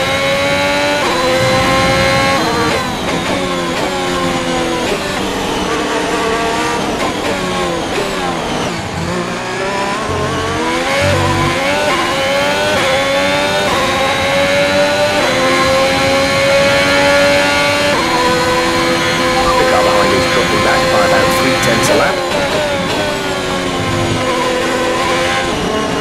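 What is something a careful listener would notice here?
A racing car engine roars, its pitch climbing and dropping as it shifts gears.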